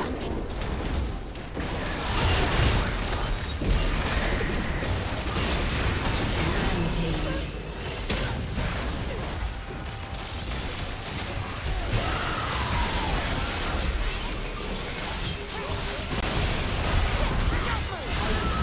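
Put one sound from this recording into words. Magic spells burst and crackle in a fast fight.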